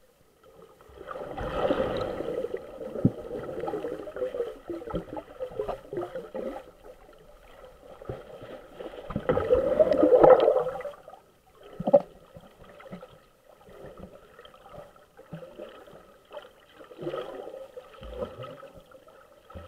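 Water gurgles and rushes close by, heard from underwater, in uneven surges.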